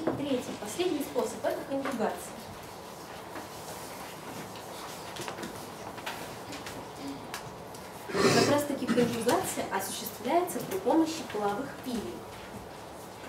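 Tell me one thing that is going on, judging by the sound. A young woman speaks calmly, with pauses.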